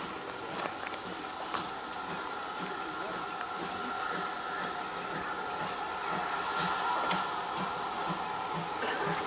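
Steam hisses from a locomotive.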